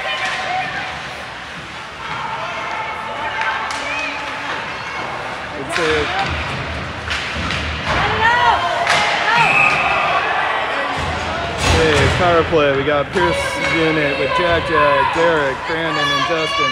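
A crowd of spectators shouts and cheers in an echoing rink.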